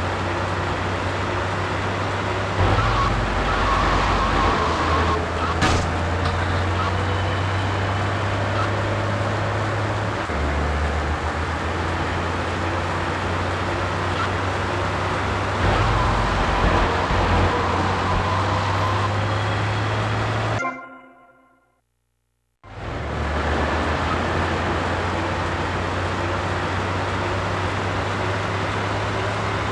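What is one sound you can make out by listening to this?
A tank engine rumbles steadily as a heavy vehicle rolls along.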